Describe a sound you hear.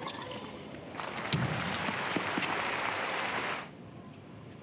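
A crowd applauds loudly and then stops.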